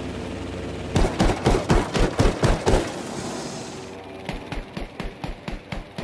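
A plane's machine guns fire in quick bursts.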